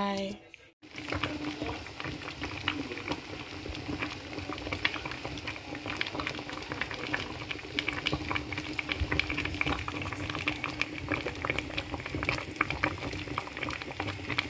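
A pot of stew simmers and bubbles softly.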